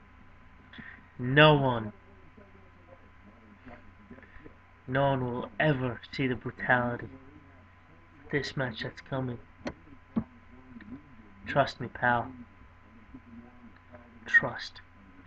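A man talks casually and close up through a small microphone, in bursts with pauses.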